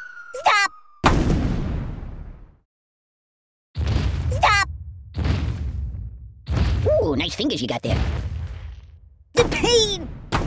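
A heavy stone figure lands and thuds repeatedly with deep booming blows.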